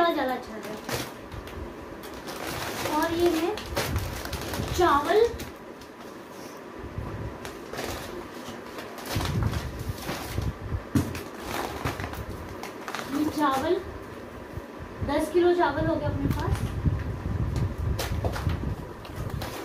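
Cardboard scrapes as a box is rummaged through.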